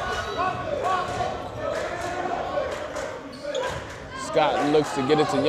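A small crowd murmurs and calls out in an echoing gym.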